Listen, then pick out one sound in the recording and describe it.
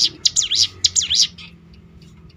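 A small bird sings a burst of loud, sharp, sweeping chirps close by.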